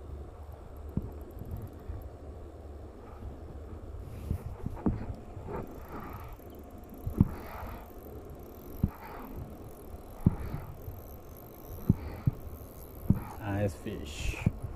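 A fishing rod knocks and taps as it is handled.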